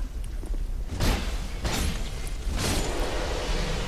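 A blade swishes and strikes sharply several times.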